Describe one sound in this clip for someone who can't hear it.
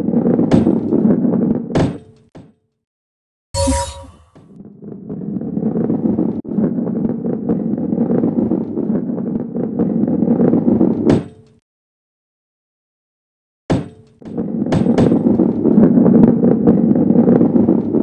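A ball rolls and rumbles over a smooth track.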